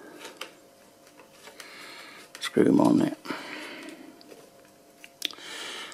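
Fingers twist a small metal connector, making faint scraping clicks.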